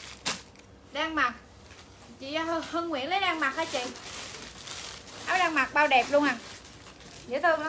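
A young woman speaks animatedly, close by.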